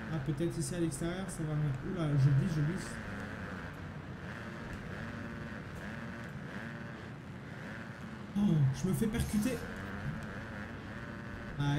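Motorbike engines buzz and rev steadily.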